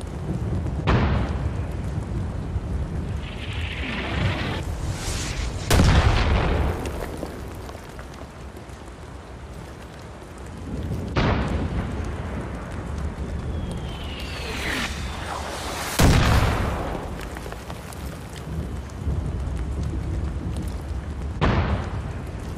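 A pistol fires single loud shots that ring out.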